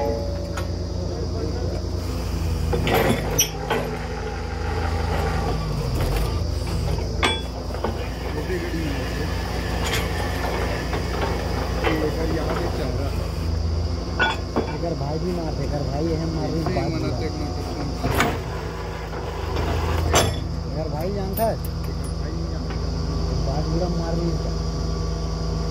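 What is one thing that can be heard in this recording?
A drilling rig's diesel engine rumbles loudly and steadily.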